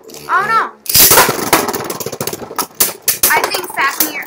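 Two spinning tops clash with sharp clicks.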